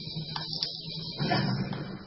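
A fire crackles in a brazier.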